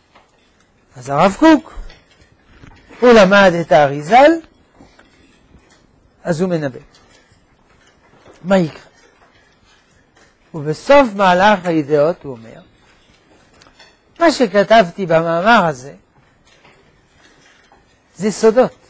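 An elderly man speaks calmly into a clip-on microphone, pausing often between phrases.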